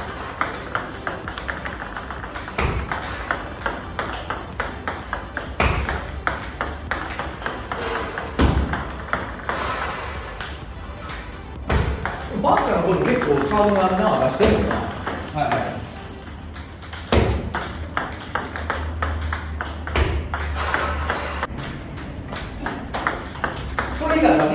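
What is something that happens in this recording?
Table tennis balls click and bounce on a table.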